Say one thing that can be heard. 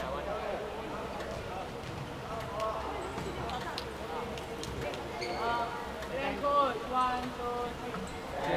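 Young women shout and call out to each other in a large echoing hall.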